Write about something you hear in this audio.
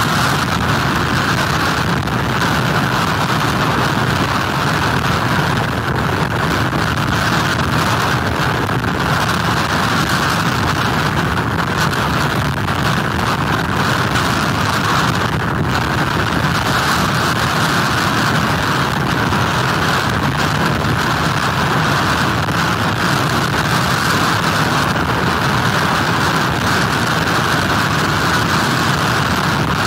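Heavy surf crashes and churns without pause.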